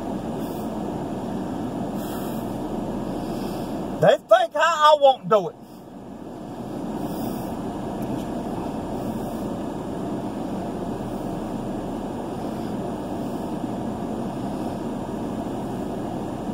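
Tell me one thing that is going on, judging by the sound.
A car engine and tyres hum steadily from inside the car.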